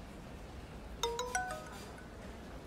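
A phone gives a short chime.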